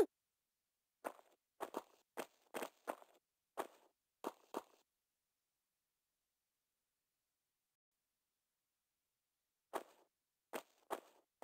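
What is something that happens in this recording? Footsteps tap on a stone floor in an echoing room.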